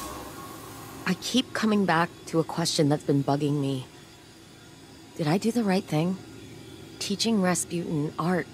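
A young woman speaks calmly and thoughtfully, close and clear.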